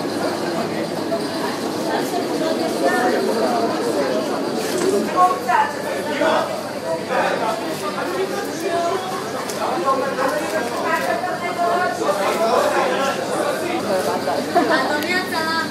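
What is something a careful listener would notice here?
A crowd of men and women chatter and call out close by.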